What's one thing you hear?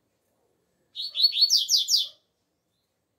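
A double-collared seedeater sings a short burst of quick, clear whistled notes.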